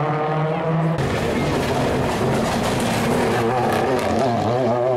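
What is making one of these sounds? Tyres screech on asphalt as a rally car slides through a bend.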